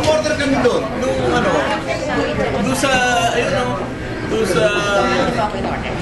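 A middle-aged man talks loudly nearby.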